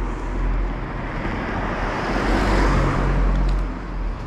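A car drives away along the street.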